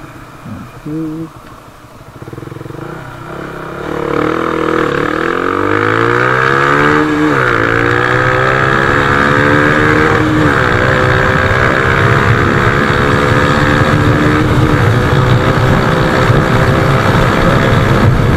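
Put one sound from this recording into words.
A single-cylinder four-stroke underbone motorcycle accelerates hard, shifting up through the gears.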